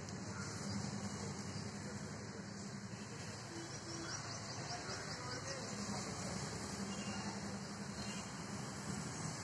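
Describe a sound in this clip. A squirrel's claws scratch softly on tree bark.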